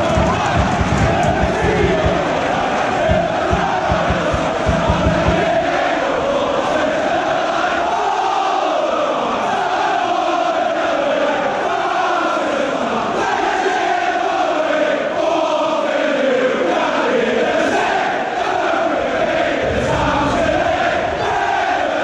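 A large crowd of football fans sings loudly together in a big open stadium.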